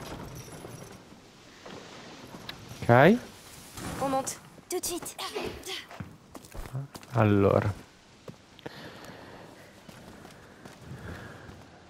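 Footsteps crunch over loose stones and rubble.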